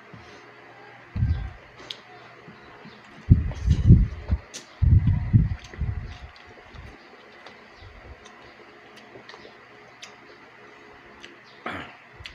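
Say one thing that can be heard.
A man chews and smacks his lips loudly close by.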